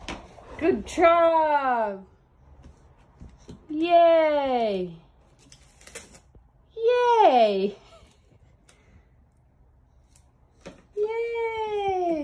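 A young child makes long, drawn-out falling cries with the voice close by, again and again.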